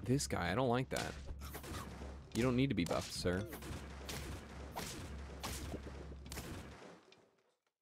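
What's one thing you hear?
Cartoonish game sound effects thump and whoosh.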